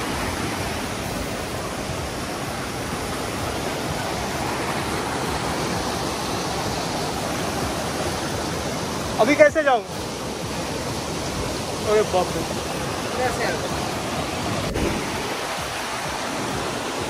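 A stream rushes and splashes over rocks outdoors.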